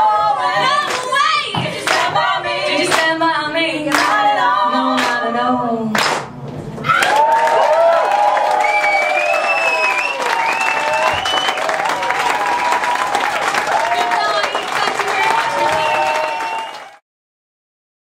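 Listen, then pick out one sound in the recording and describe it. Several women sing together into microphones.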